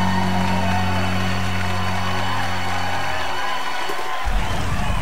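Rock music plays loudly with electric guitar and drums, then ends.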